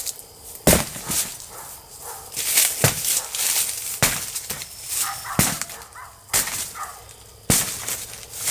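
A hammer strikes metal in sharp, irregular blows.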